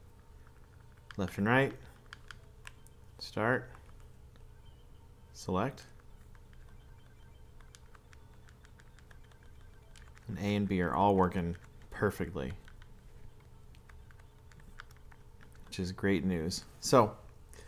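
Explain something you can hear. Buttons on a handheld game console click softly as they are pressed.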